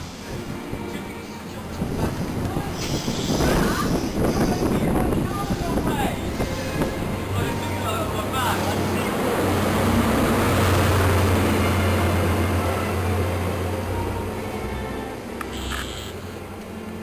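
A passenger train rumbles past at speed on the rails.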